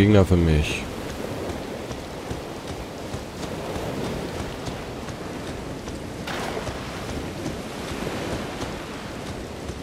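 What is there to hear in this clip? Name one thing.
Footsteps run over sand and grass.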